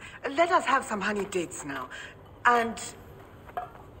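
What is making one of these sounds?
A woman speaks calmly and asks a question.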